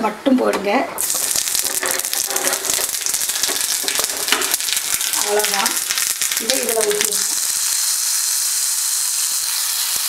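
Hot oil sizzles and crackles loudly.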